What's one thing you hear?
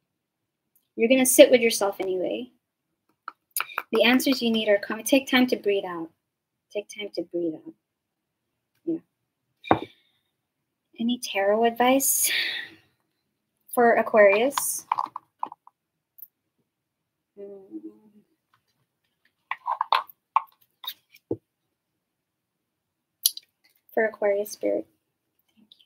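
A young woman talks calmly and close to a microphone, in short bursts with pauses.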